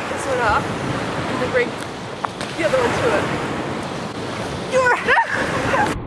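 Small waves lap against a pebbly shore.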